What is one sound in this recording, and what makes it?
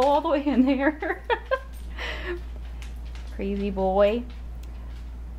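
A dog howls and yowls in long, wavering cries close by.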